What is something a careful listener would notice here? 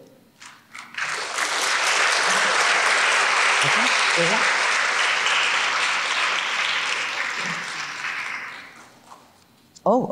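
An audience applauds steadily, then the applause fades.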